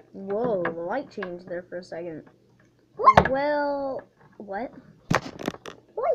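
A plastic toy taps on a wooden table.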